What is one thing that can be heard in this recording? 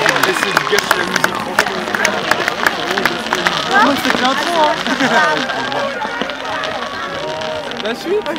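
Fireworks crackle and pop overhead.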